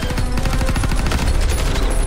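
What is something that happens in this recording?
Rifles fire rapid bursts of shots.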